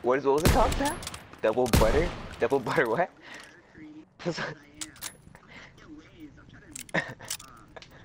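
A rifle bolt clacks as it is reloaded.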